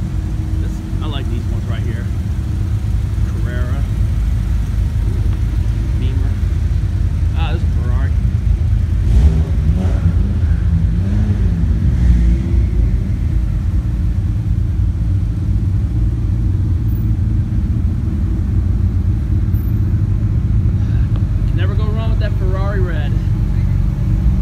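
Car engines rumble as a line of cars rolls slowly past.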